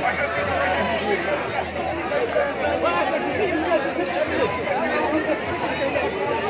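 A large crowd of men and women chants and shouts outdoors.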